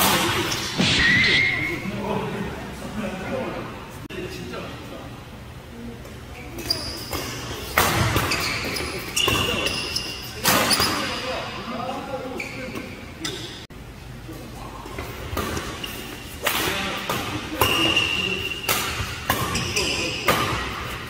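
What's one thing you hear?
Shoes squeak sharply on a court floor.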